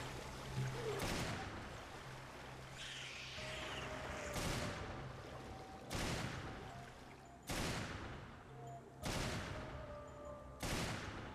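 Gunshots ring out one at a time, echoing in a hard enclosed space.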